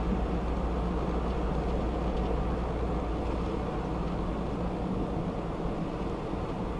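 A car engine hums steadily while driving at speed.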